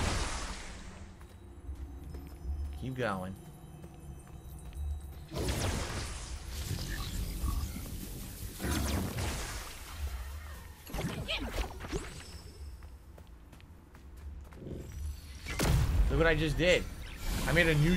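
Magical blasts and clashes burst from a video game fight.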